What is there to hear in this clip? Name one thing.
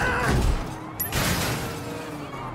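A car crashes into a pole with a loud bang.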